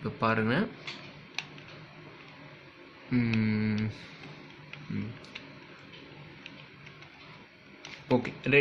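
A plastic puzzle cube clicks and clacks as it is twisted in the hands.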